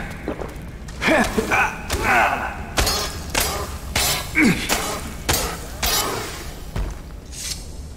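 A sword slashes and strikes a creature.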